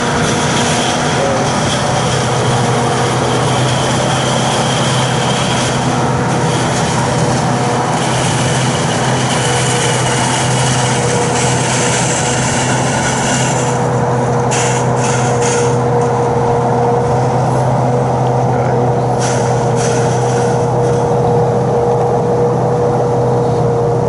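Chopped crop hisses as it sprays into a trailer.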